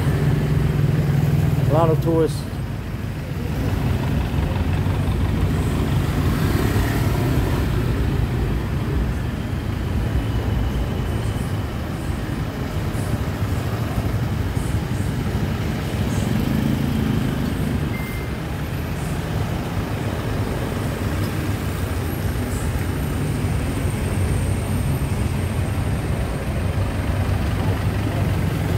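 Car engines idle and rumble steadily in busy street traffic.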